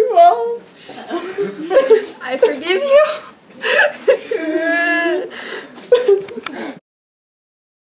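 A young man sobs and wails loudly, close by.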